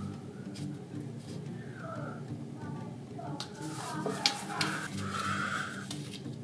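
Paper tape crinkles softly as hands press it down.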